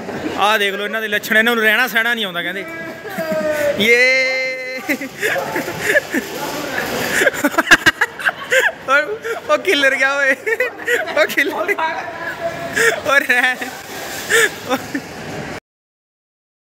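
A young man laughs and shouts excitedly close by.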